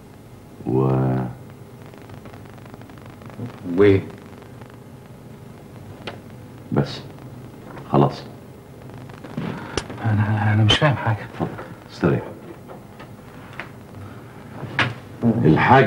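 An older man speaks slowly and gravely, close by.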